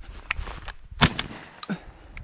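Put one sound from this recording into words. A shotgun fires once.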